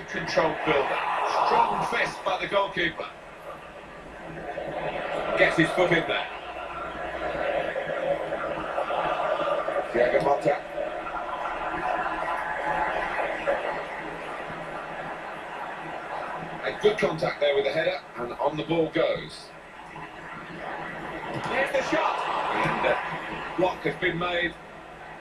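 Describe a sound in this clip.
A stadium crowd roars steadily through a television speaker.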